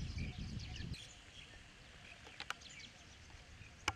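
A golf club chips a ball with a soft tap.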